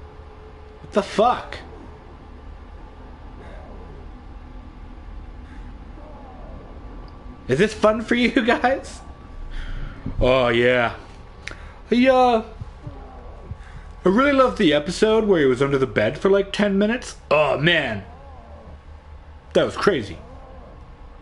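A man speaks casually into a close microphone, in bursts with pauses.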